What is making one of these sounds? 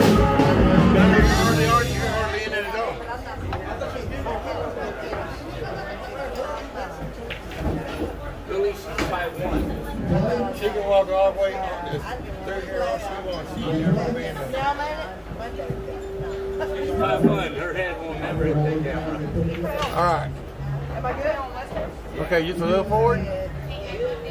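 A crowd of men and women chatter in a busy room.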